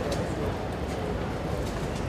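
Typewriter keys clack sharply.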